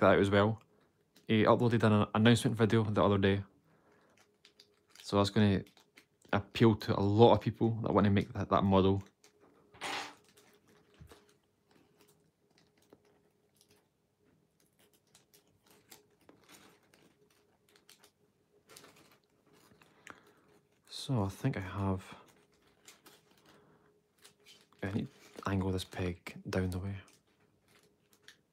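Thin paper crinkles softly as fingers fold it.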